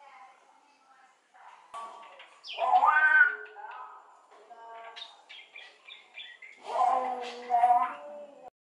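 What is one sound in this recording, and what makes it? A mynah bird calls close by with loud, warbling whistles and squawks.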